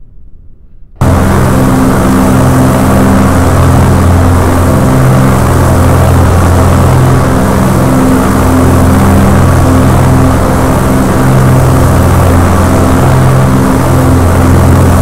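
An aircraft engine drones steadily.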